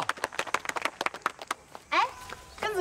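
A crowd claps hands.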